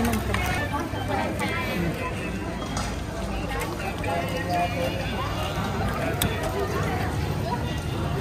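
A crowd chatters outdoors.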